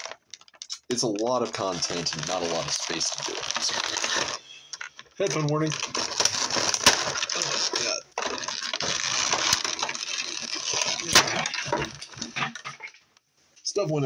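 Plastic packaging crinkles and crackles as hands handle it.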